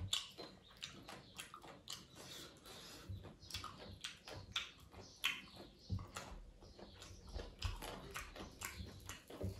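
A man chews food wetly close to the microphone.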